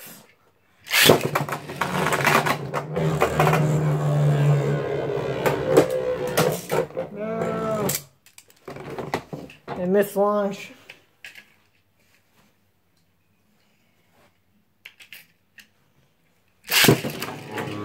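A spinning top is launched with a sharp ripping zip.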